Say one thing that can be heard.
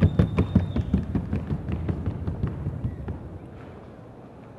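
A horse's hooves beat a fast, even patter on a hard floor.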